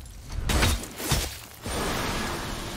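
Heavy metal blows crash and shatter loudly.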